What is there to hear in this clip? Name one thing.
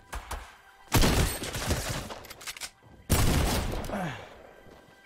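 Gunshots bang loudly in a video game.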